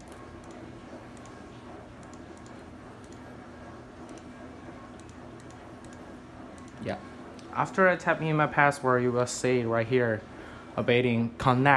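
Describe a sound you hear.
A computer mouse clicks.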